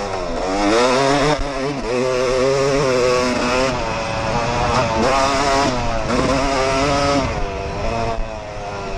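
A dirt bike engine revs loudly up and down, close by.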